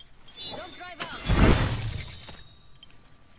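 A loud whoosh and heavy thud ring out.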